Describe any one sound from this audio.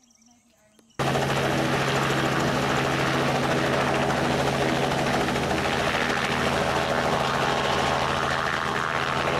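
A helicopter's engine whines and its rotor beats steadily close by.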